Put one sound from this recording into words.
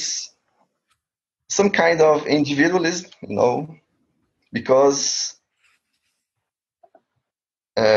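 A young man talks calmly and close to the microphone, in short bursts with pauses.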